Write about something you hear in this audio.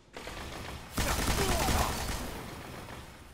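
A rapid burst of gunfire rings out loudly.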